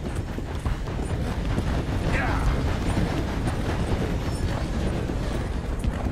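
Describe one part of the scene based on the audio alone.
A train rumbles nearby, growing louder.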